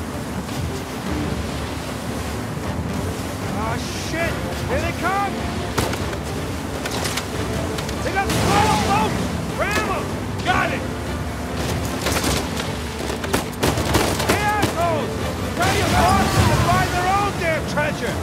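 Rough waves crash and splash against a speeding boat's hull.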